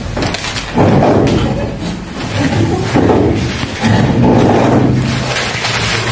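Paper rustles as pages are flipped.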